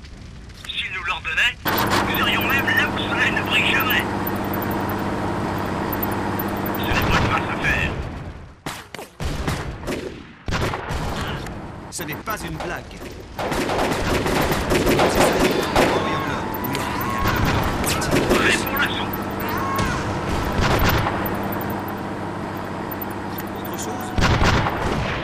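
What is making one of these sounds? Rifles crackle in scattered gunfire.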